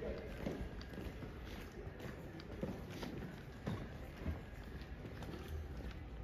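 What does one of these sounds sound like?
Footsteps tap on a paved street nearby.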